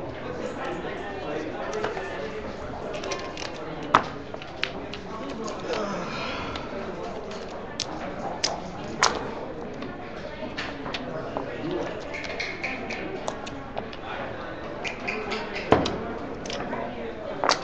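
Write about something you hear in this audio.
Dice rattle in a leather cup and tumble onto a board.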